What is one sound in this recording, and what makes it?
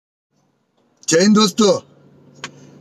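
A young man speaks with animation, close to the microphone.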